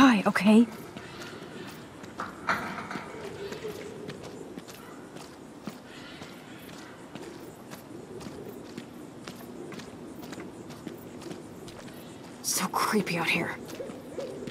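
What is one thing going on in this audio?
Footsteps crunch softly on rough ground.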